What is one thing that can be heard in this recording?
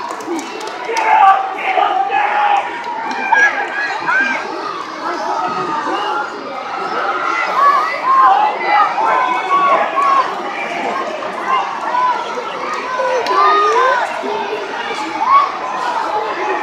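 A large crowd of men and women shouts and chatters throughout a big echoing arena.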